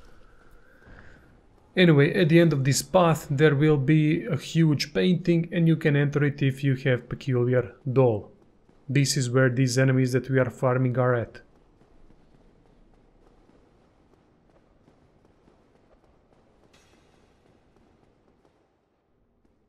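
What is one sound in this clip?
Armored footsteps clatter on a stone floor.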